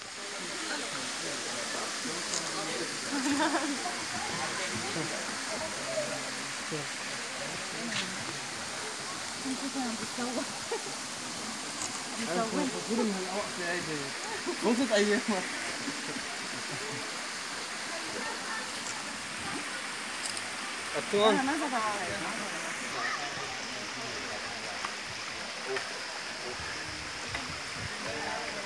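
Water trickles gently over rocks into a stream.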